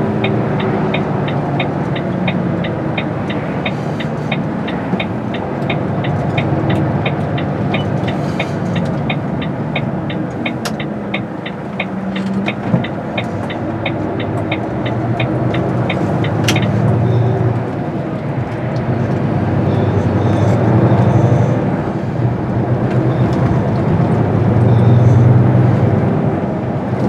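A car drives, heard from inside the car.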